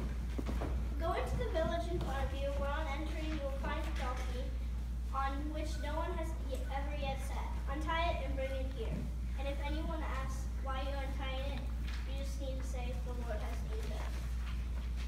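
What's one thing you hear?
A child speaks out clearly in a room.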